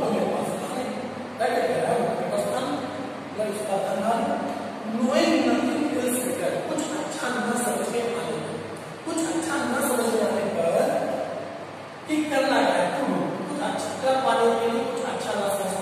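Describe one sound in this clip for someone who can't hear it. A man speaks calmly and clearly, as if explaining to a class.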